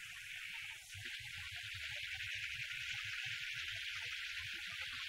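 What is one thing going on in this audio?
A steam train rumbles closer.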